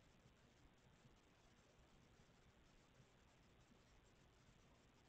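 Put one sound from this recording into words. Paws thump softly on a padded blanket.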